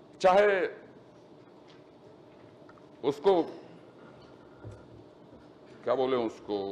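A man speaks in short phrases through a microphone in a large hall.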